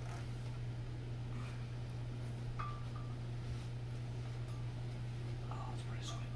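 A folding table is set down on carpet with a soft thud.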